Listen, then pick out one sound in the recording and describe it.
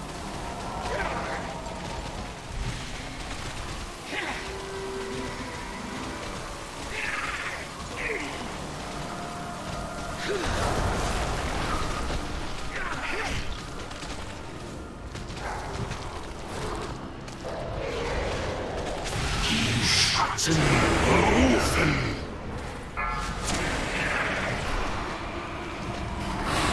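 Magic spells whoosh and crackle amid a busy battle.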